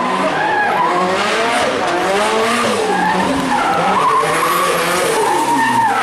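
A race car engine roars loudly, its pitch rising and falling as it revs.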